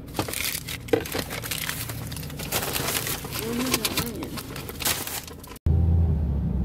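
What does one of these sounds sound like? A paper bag rustles and crackles.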